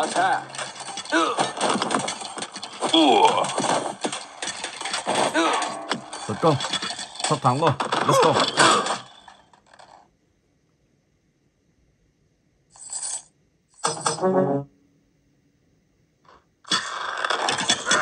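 Small swords clash and clang in a video game battle.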